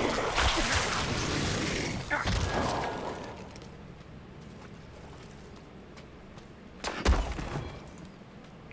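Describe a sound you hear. Game combat sounds crash and whoosh in bursts.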